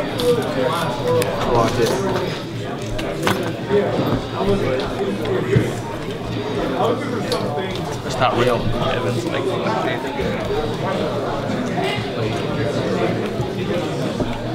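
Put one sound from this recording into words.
Cards riffle and rustle in a player's hands.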